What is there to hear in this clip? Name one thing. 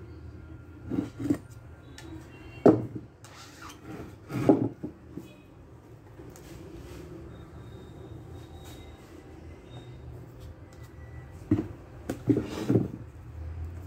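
A wooden frame knocks against a hard floor a few times.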